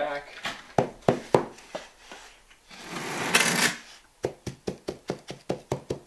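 A trowel smooths wet mortar with quick, rhythmic scraping strokes.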